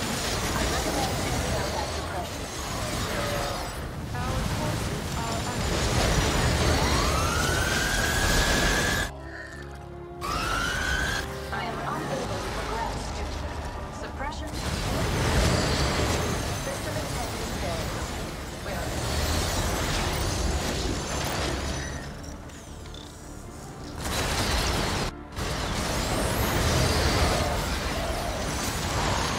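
Explosions boom now and then.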